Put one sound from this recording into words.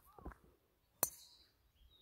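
A golf club strikes a ball with a sharp crack.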